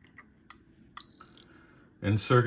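An electronic meter beeps once.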